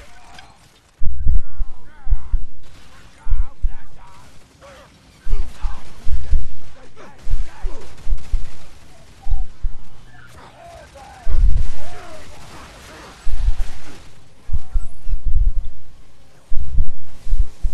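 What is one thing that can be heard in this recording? A gun fires in rapid bursts, with heavy booming shots.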